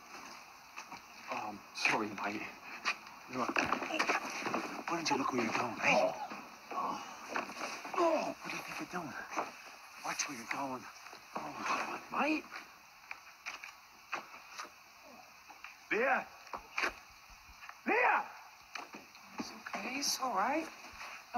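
A man speaks tensely and angrily, close by.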